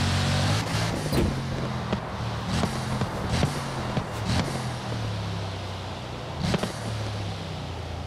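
A car exhaust pops and crackles sharply as the engine slows.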